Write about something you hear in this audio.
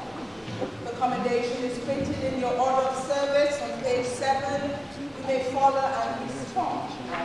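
A group of people sing a hymn together.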